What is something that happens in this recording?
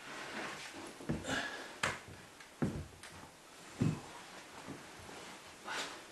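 A mattress rustles as a man lies down on it.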